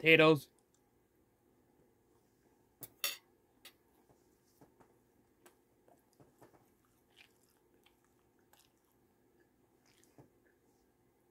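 A young man chews food close by.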